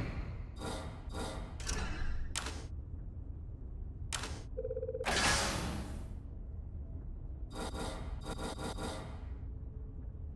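Menu selection sounds click and chime in quick bursts.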